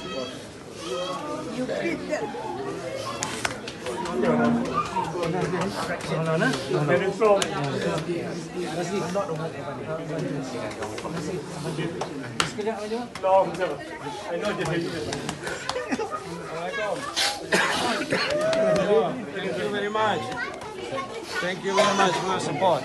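A dense crowd of men and women talks and calls out all around, close by.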